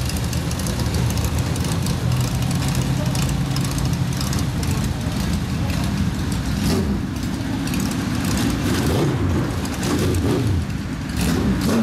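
Cars drive past close by.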